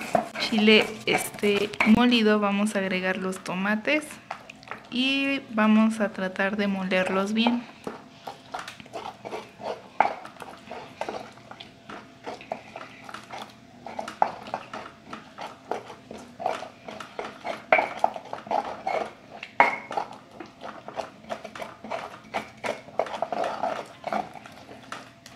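A stone pestle grinds and taps against a stone mortar.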